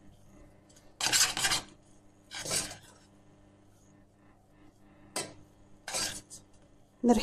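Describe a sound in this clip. A metal spoon scrapes and stirs food in a pot.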